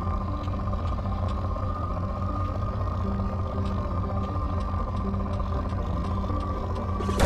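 Soft electronic ticks sound at irregular intervals.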